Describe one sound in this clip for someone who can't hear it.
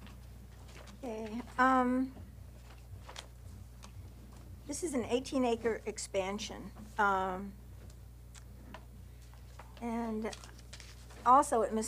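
An older woman speaks calmly into a microphone.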